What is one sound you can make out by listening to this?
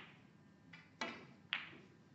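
A snooker cue strikes the cue ball with a sharp tap.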